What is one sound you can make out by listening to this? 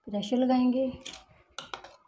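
A metal spoon stirs liquid in a metal pot.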